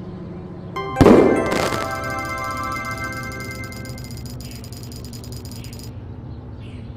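A bright chiming jingle rings out and slowly fades.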